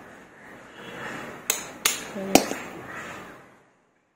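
A plastic bottle cap clicks shut.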